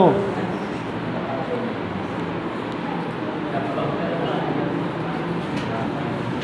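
A duster rubs across a whiteboard.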